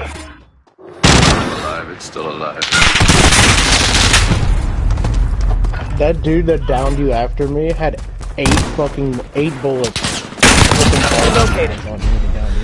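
Rapid gunfire crackles in loud bursts.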